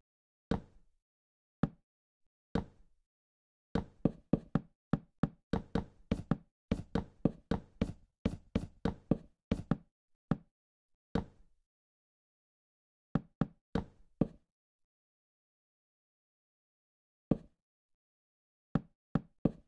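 Wooden blocks are placed with short hollow knocks, sometimes in quick runs.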